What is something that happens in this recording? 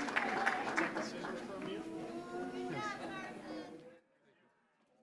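A small crowd murmurs and talks.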